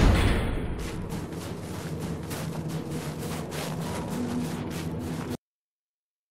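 Heavy boots thud and clank on a hard floor at a steady walking pace.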